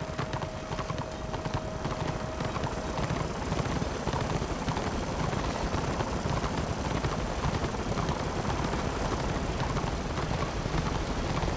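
Hooves clop steadily as a horse gallops.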